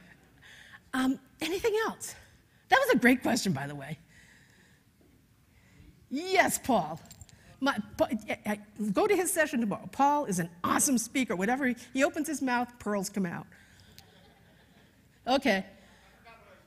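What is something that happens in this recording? An older woman speaks with animation through a microphone.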